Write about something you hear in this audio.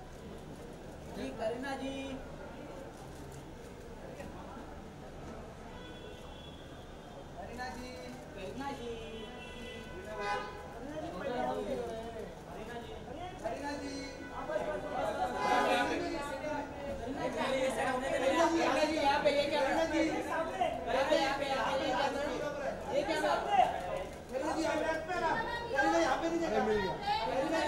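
Several men shout and call out loudly nearby.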